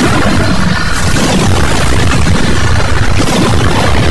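A laser beam fires with a buzzing roar.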